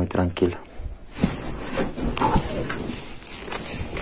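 A blanket rustles as it is pulled off a bed.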